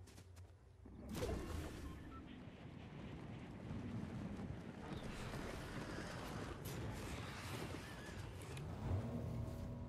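Wind rushes loudly past a figure gliding through the air.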